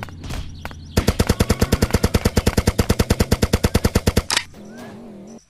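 An automatic rifle fires a fast, rattling burst.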